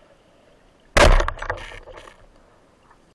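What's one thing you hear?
A speargun fires underwater with a sharp, loud snap followed by a brief rattle.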